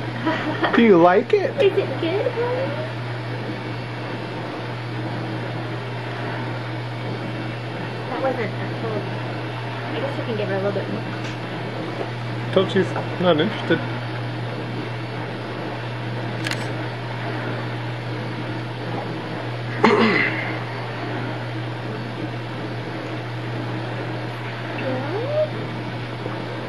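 A baby babbles and squeals nearby.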